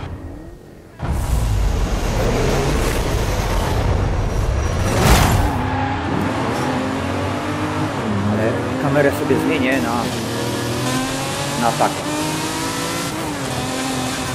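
A sports car engine roars and revs up through its gears.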